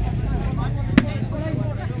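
A ball is kicked with a sharp thump.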